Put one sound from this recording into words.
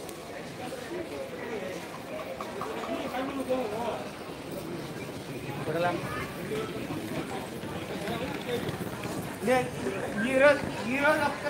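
A young man speaks close to a phone microphone.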